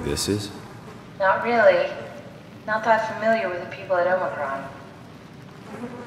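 A woman speaks calmly over a radio call.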